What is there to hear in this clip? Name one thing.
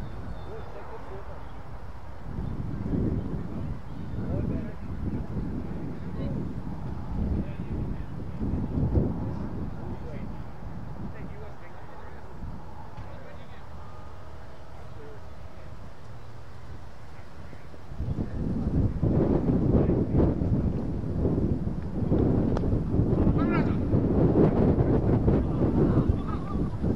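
Wind gusts roughly across the microphone outdoors.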